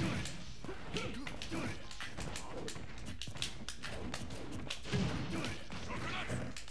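Punches and blasts thud and crack in a video game.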